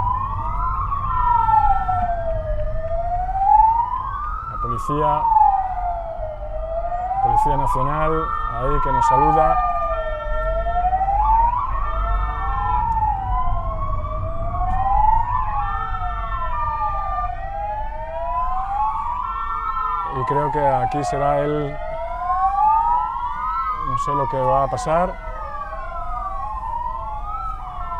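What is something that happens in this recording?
Several police sirens wail up and down close by.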